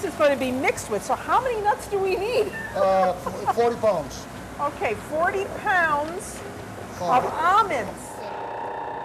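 A woman talks and laughs with animation close by.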